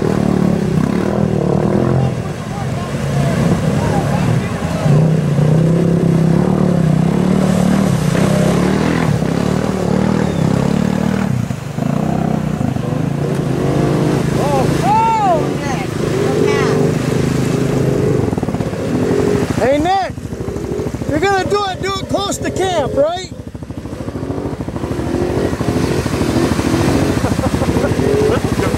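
Mud and water splash and churn under spinning tyres.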